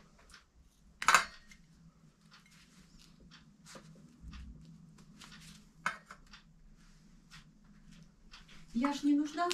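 Pliers snip and click against metal wires.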